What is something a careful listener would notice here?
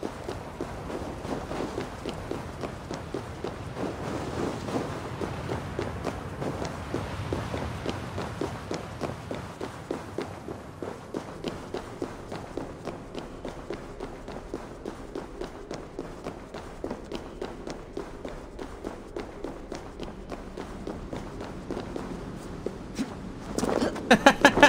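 Footsteps crunch through snow and then tread on stone.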